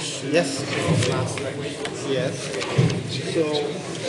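Paper rustles as a page is moved.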